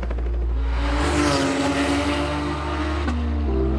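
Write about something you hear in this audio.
Racing car engines roar past at high speed.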